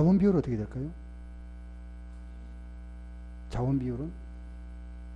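A man speaks calmly into a microphone in short phrases.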